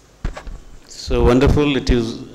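A man speaks calmly and loudly into a microphone.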